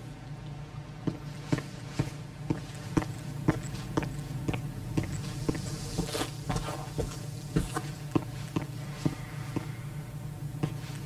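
Footsteps tread slowly across a hard floor.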